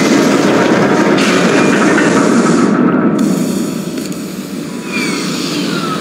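Boot thrusters roar with a steady rushing hiss.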